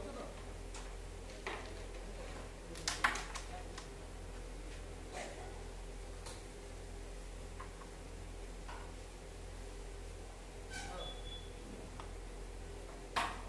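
A striker flicks across a wooden board and knocks sharply into small discs.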